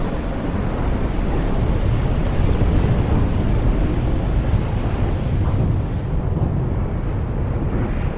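A sandstorm roars with strong, gusting wind.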